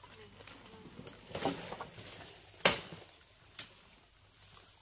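Leaves and fern fronds rustle as people push through dense undergrowth.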